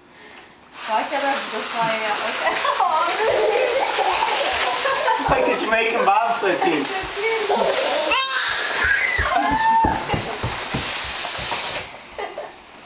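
Toddlers babble and squeal close by.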